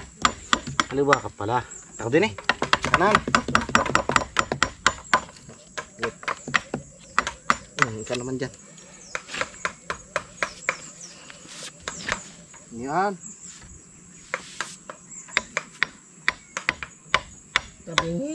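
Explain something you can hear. A man talks nearby in a relaxed voice.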